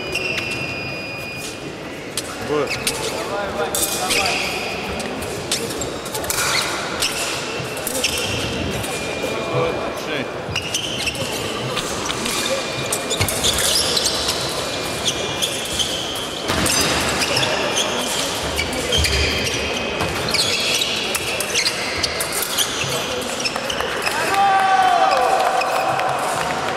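Fencers' shoes stamp and squeak on a wooden floor in a large hall.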